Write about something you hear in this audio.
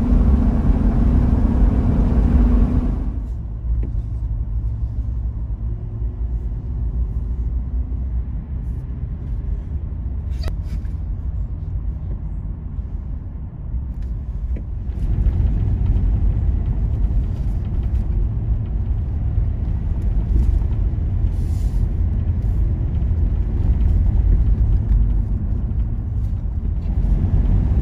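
Tyres roll and rumble on a paved road.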